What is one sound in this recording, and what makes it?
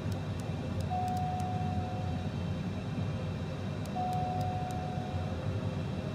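Jet engines hum steadily in a low rumble.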